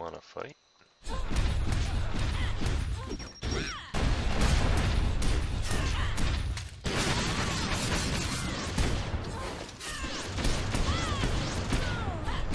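Magic spells crackle and blast in quick bursts.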